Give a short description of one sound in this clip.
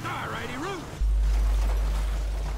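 A vehicle crashes with a loud thud.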